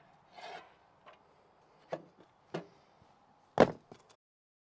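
A wooden board knocks against a saw table.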